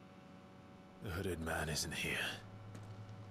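A young man speaks calmly and quietly up close.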